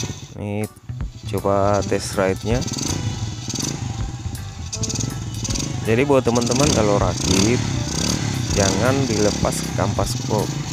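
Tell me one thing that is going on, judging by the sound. A motorcycle engine revs as the motorcycle rides slowly past.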